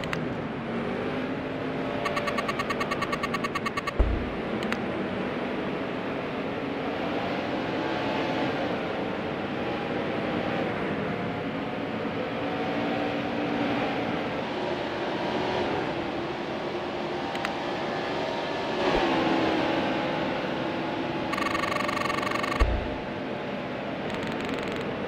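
Race car engines roar and whine as cars speed past.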